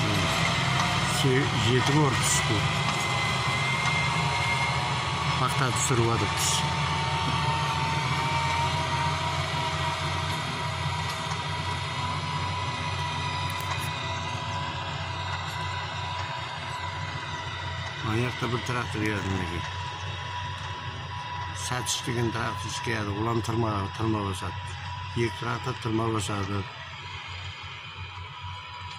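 A tractor engine rumbles steadily nearby.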